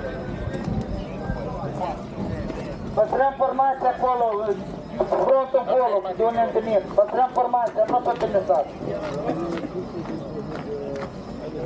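Plastic shields knock and clatter.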